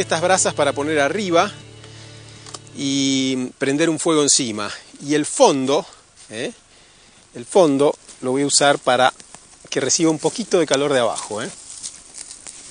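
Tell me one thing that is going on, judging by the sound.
An older man speaks calmly and clearly, close by.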